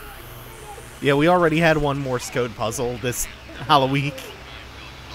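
A man's voice calls out urgently through a small radio speaker.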